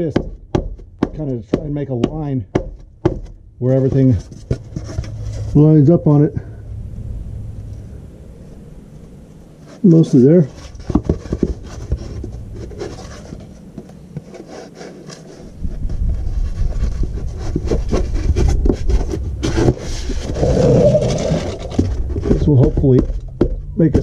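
Foam board scrapes and taps against a metal underside.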